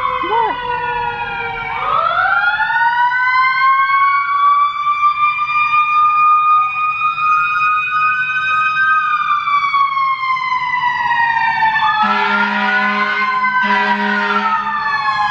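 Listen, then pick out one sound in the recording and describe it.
A siren wails nearby, rising and falling in pitch.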